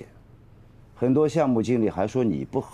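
An elderly man speaks calmly nearby.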